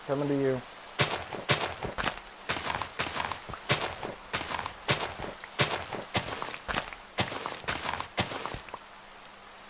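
Digging sounds crunch rapidly in a game as blocks of earth are dug out.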